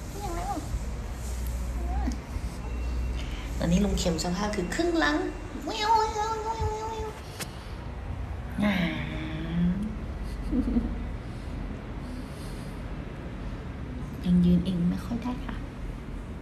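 A young woman talks close by in a playful, cooing voice.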